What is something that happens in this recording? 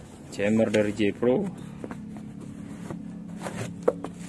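Cardboard scrapes and taps as a box is opened.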